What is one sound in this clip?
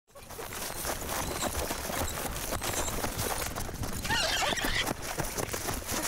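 Footsteps run and rustle through dry grass.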